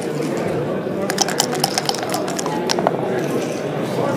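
Dice rattle and bounce across a wooden board.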